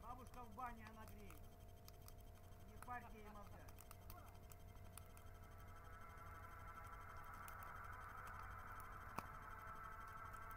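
A bonfire crackles and pops.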